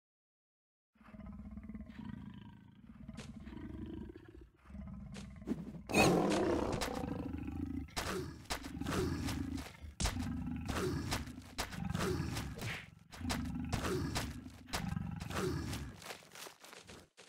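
A lion roars and growls loudly, again and again.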